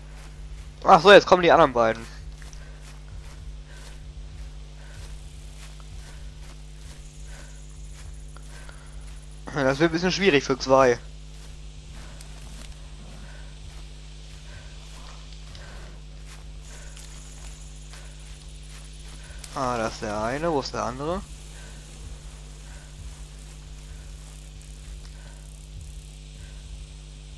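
Footsteps swish through tall grass at a steady walking pace.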